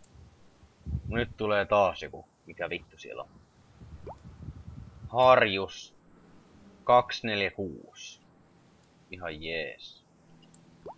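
A young man talks casually and close to a microphone.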